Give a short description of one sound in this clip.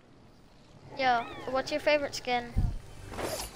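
A chest opens with a bright chiming sound.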